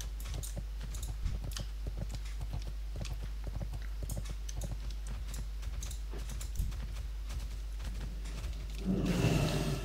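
Hooves clop quickly and steadily on the ground.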